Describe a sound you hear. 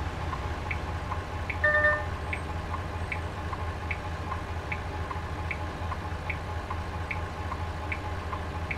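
A turn signal ticks steadily in a regular rhythm.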